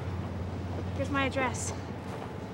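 A young woman speaks brightly at close range.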